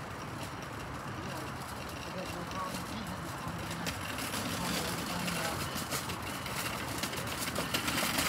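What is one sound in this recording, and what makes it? A train approaches along the tracks, its rumble growing louder.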